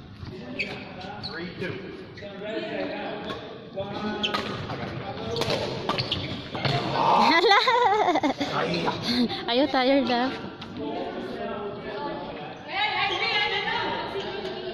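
Several men and women chatter and call out in a large echoing hall.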